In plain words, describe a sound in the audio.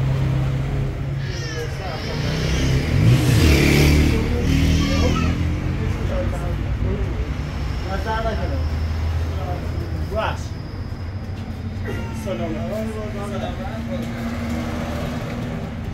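Men talk with each other outdoors.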